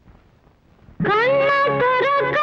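Music plays loudly from a cassette player.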